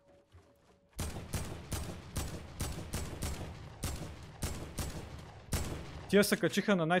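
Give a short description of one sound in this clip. Gunfire rattles in rapid repeated shots.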